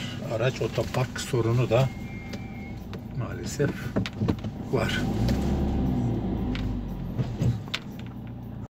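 A car's tyres roll over a paved road.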